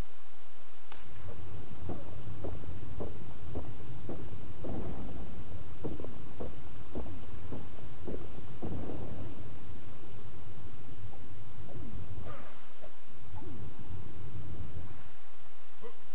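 A pickaxe strikes rock again and again.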